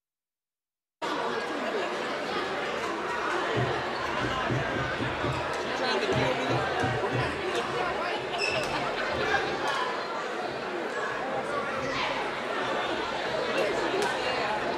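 A crowd chatters and murmurs in a large echoing gym.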